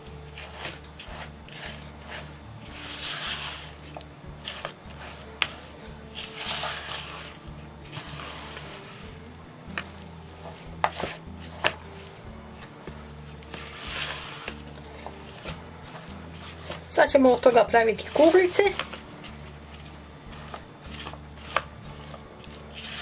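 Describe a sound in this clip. A spatula knocks against the side of a plastic bowl.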